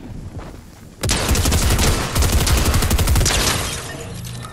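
Rapid gunfire rattles loudly in quick bursts.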